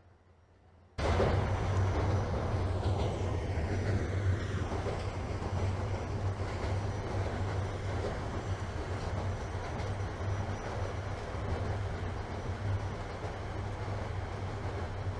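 A subway train rumbles and rattles along the tracks through a tunnel.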